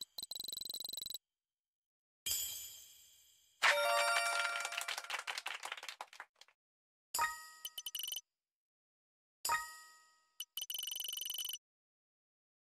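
Quick electronic ticks rattle as a game score counts up.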